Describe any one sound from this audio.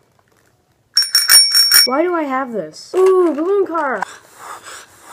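A toy horn honks with wavering squeals.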